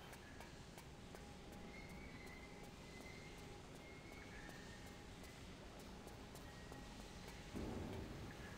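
Quick footsteps tap on a metal floor.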